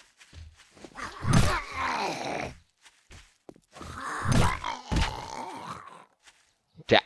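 A zombie growls and snarls close by.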